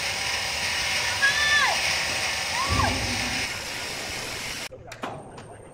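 A large wire saw machine whirs and hisses steadily as it cuts.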